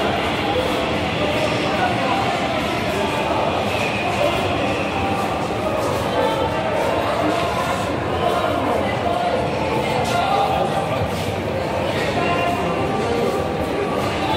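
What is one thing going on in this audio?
Footsteps tap on a hard floor close by.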